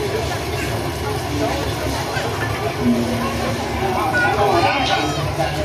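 A crowd of women and children chatters nearby.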